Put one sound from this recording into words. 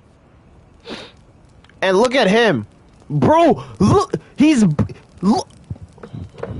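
A young man talks loudly and with animation into a microphone.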